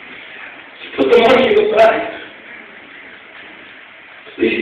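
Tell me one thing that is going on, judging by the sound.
A man speaks slowly into a microphone, his voice ringing in a large hall.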